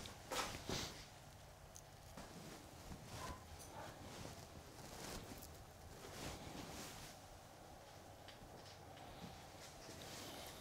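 Spruce branches rustle as they are bent by hand.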